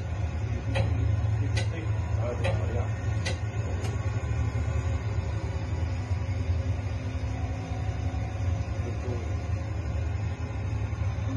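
A simulated car engine hums steadily through loudspeakers.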